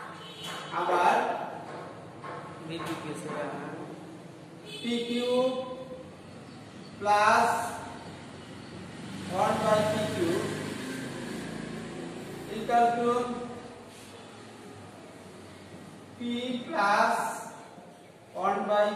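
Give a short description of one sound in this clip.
A man talks calmly and steadily nearby, as if explaining.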